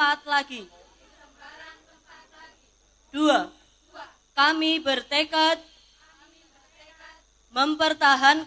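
A woman reads out loudly through a microphone, in bursts with pauses.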